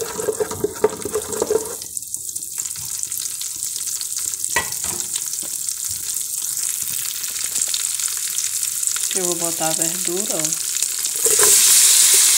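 Hot oil sizzles softly in a pan.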